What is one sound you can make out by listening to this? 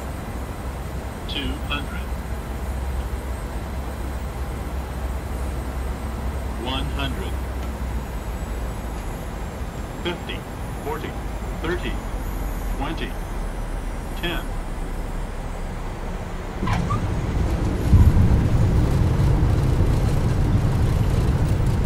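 Jet engines hum steadily.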